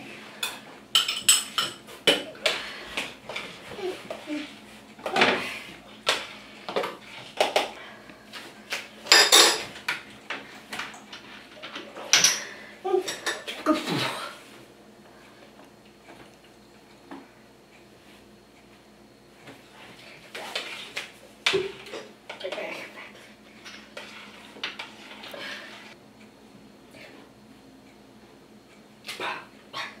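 Cooking utensils clatter and clink against pots.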